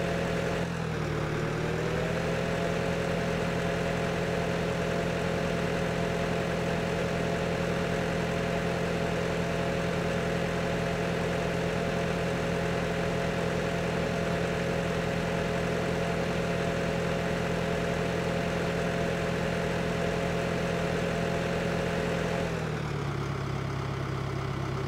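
A tractor engine rumbles steadily, dropping in pitch as it slows near the end.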